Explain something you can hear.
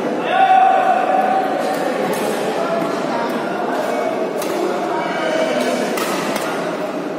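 A crowd of people chatters and shouts in a large echoing hall.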